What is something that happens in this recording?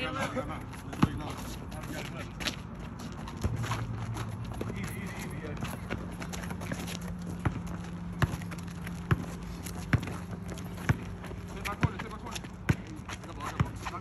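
A basketball bounces on an asphalt court outdoors.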